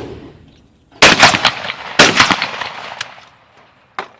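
A shotgun fires two loud blasts in quick succession outdoors.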